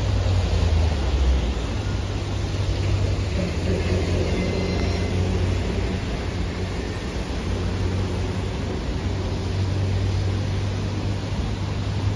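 A train rumbles as it approaches from a distance.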